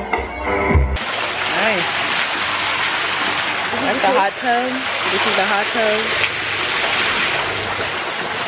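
Water splashes steadily down into a pool.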